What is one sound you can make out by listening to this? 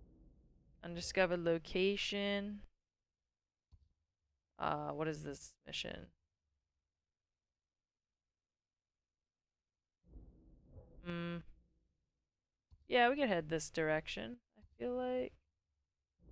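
A young woman talks with animation into a close microphone, in short bursts with pauses.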